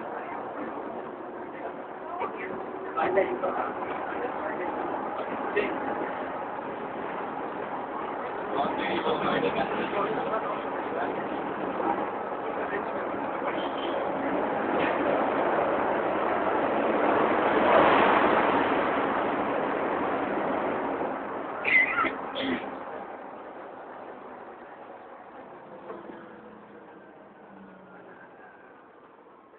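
Passengers chatter in the background.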